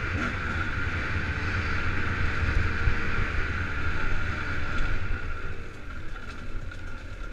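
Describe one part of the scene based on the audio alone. Bike tyres rumble and crunch over a dirt trail.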